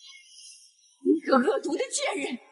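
A young woman speaks sharply and angrily.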